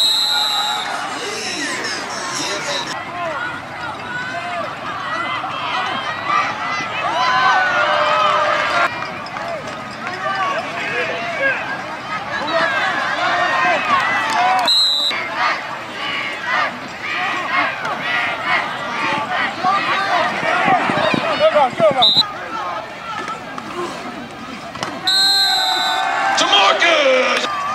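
A crowd cheers in the stands outdoors.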